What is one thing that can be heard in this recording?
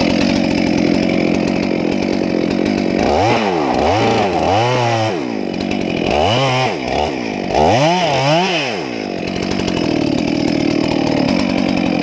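A chainsaw cuts into wood.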